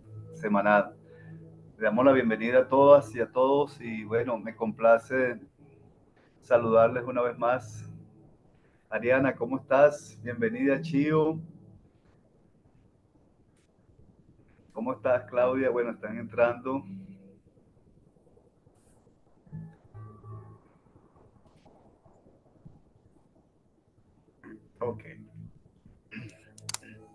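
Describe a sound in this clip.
An elderly man talks calmly and warmly through an online call microphone.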